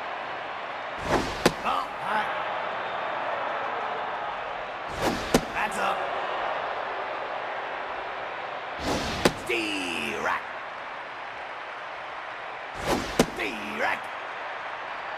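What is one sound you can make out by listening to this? A baseball smacks into a catcher's mitt again and again.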